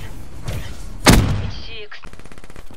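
A loud blast booms and echoes briefly.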